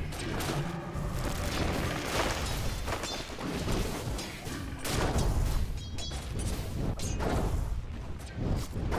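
Weapons clash and magic blasts crackle in a busy fight.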